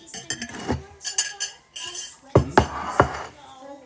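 A bowl clatters on a countertop.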